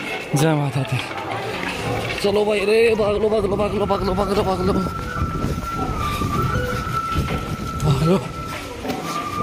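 Footsteps shuffle on a paved path.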